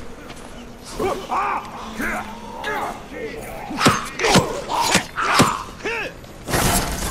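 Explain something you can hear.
Heavy blows land in a close fight.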